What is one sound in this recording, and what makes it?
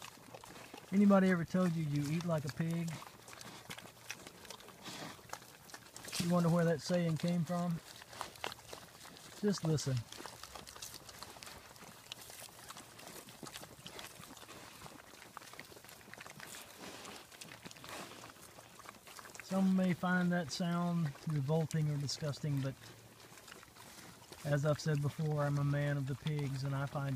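Pigs grunt and squeal close by.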